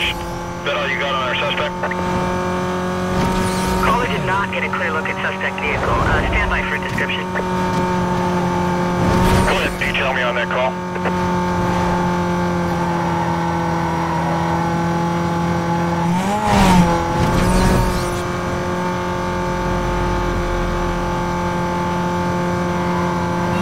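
A sports car engine roars at high speed in a video game.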